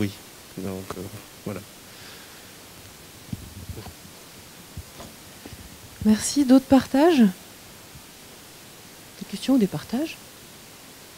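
A woman speaks into a microphone in short bursts with long pauses.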